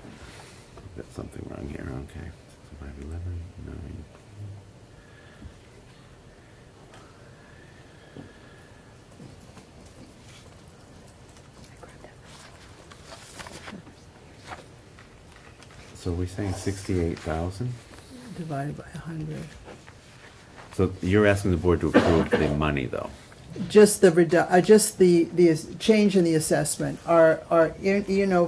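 A man speaks calmly into a microphone in a meeting room.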